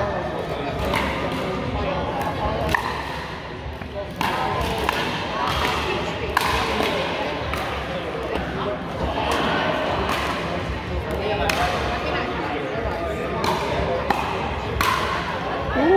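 Paddles pop against a plastic ball.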